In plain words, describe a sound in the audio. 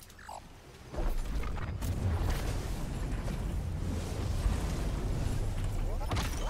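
Crystals grind and rumble as they are pushed.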